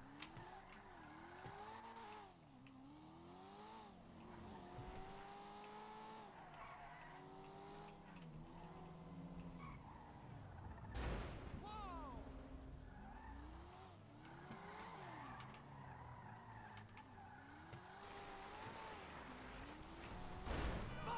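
A car engine revs up and down throughout.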